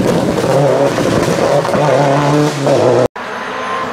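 Tyres splash through water on a wet road.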